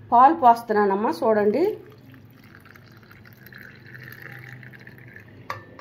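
Milk pours and splashes into a glass.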